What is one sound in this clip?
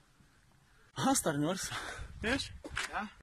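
A man talks close by with animation.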